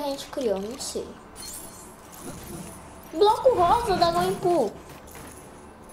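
Bright chimes tinkle as coins are scattered and picked up.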